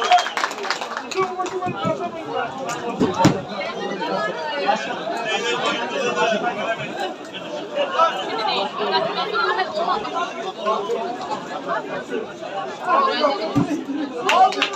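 Men nearby chatter and talk among themselves.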